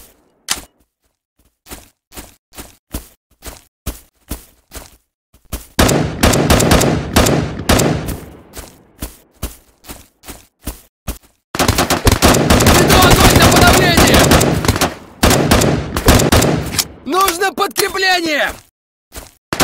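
A rifle fires in quick, loud bursts.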